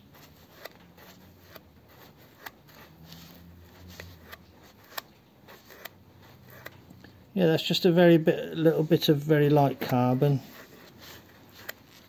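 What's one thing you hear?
A cloth rubs softly against metal.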